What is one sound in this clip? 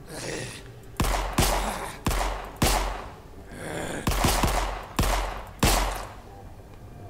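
A pistol fires a series of shots.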